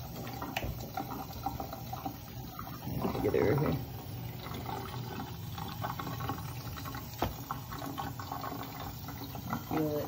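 Water runs from a tap into a metal sink.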